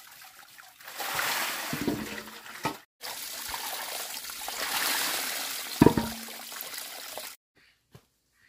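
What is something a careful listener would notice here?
Water trickles and splashes onto rocks.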